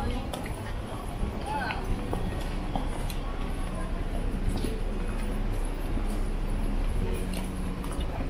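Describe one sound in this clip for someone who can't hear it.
Traffic rumbles along a street below.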